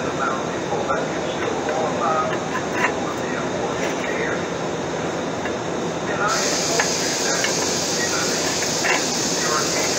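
Metal pieces clink and tap on a metal surface.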